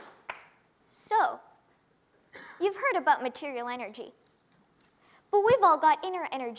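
A young girl speaks clearly through a microphone in a large hall.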